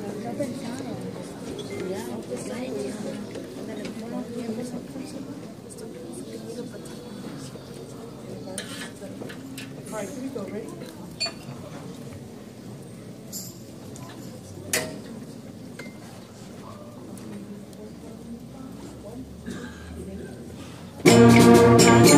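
Children murmur and chatter in a large room.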